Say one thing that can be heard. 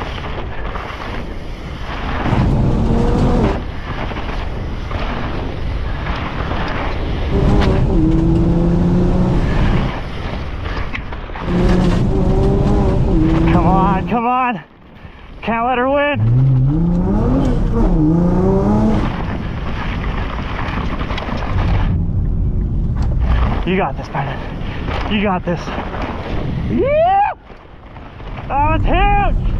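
Bicycle tyres rumble and rattle over a dirt trail.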